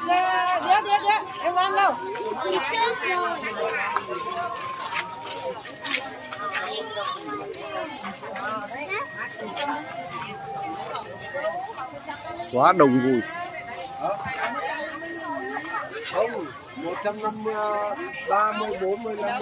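Women talk loudly close by.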